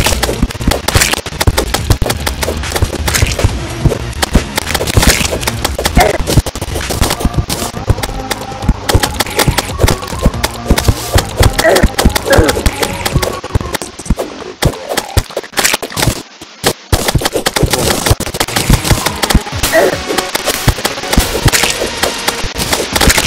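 Video game music plays with a thumping beat.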